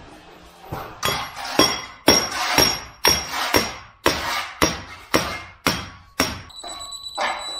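A hammer taps a nail with sharp metallic strikes.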